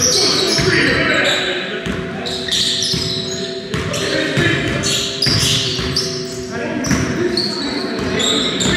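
Young men call out to each other across an echoing hall.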